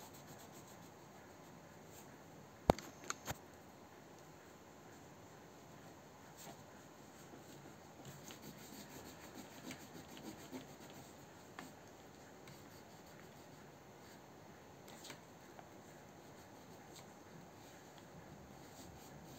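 A crayon scratches softly across paper.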